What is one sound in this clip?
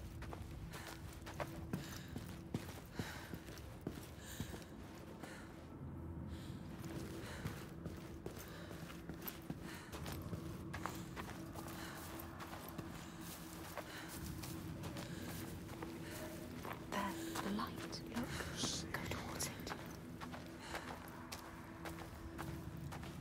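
Footsteps crunch over dirt and gravel.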